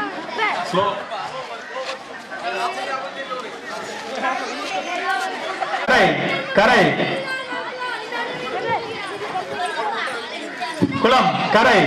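A crowd of children chatters and shouts loudly outdoors.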